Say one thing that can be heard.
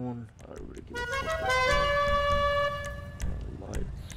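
A vehicle horn plays a rising musical scale.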